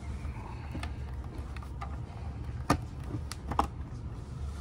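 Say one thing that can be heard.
A plastic latch clicks as it is turned.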